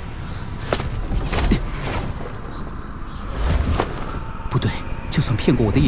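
A sword whooshes through the air.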